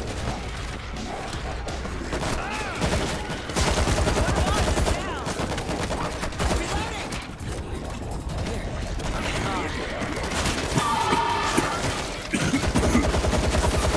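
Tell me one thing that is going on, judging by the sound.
Zombies snarl and groan.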